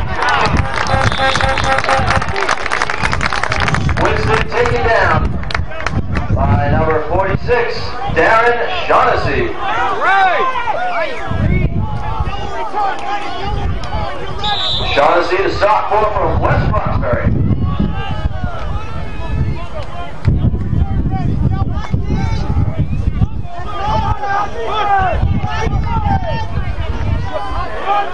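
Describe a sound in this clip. Young men shout and cheer close by outdoors.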